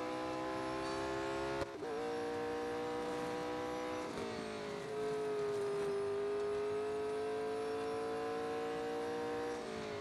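A racing car engine roars at high revs, its pitch dropping and rising as the gears shift.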